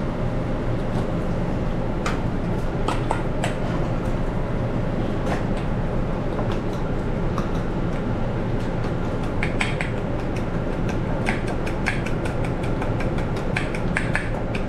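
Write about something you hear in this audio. A metal spoon clinks and scrapes against a metal bowl.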